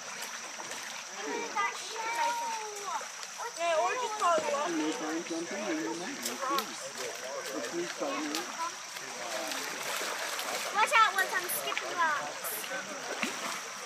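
Water splashes as a child wades through a shallow stream.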